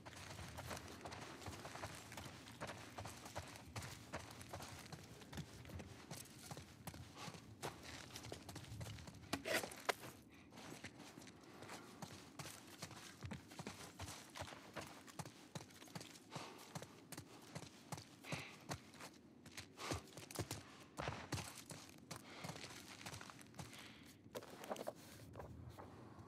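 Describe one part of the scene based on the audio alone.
Footsteps crunch over debris on a hard floor.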